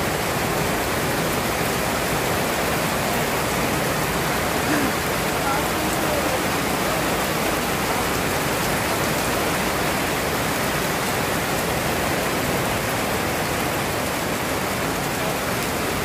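Strong wind gusts and roars.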